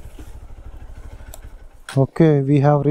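A motorcycle engine idles with a steady low putter.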